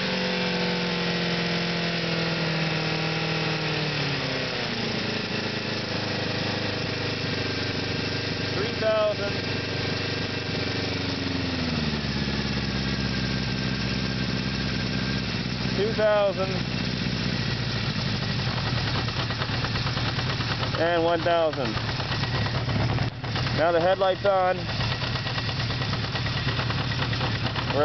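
A motorcycle engine runs close by, its pitch dropping twice as it slows to a lower idle.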